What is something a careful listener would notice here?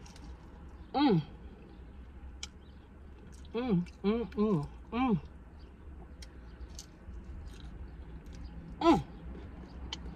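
A woman makes pleased humming sounds while eating.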